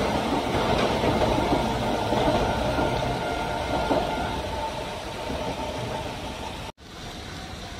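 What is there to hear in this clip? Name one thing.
A distant train rolls along the tracks.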